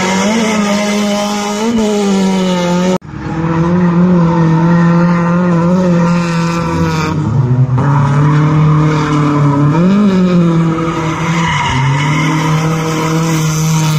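Tyres screech as a car slides.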